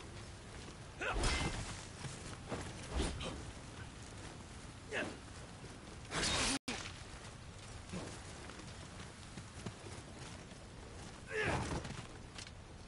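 Sword blows strike and clang in a fight.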